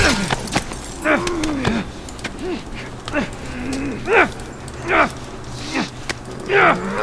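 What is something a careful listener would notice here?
A man grunts and strains in a struggle.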